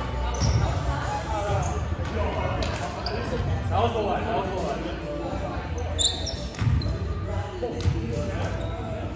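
Young men and women call out and chatter in a large echoing gym.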